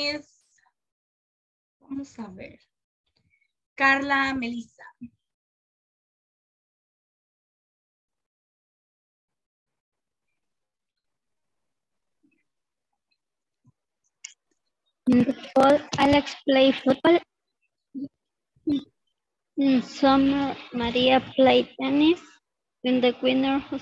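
A woman speaks calmly through an online call, in bursts with pauses.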